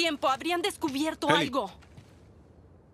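A young girl speaks with animation, close by.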